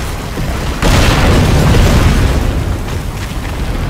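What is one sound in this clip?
A fiery explosion bursts with a loud crackling blast.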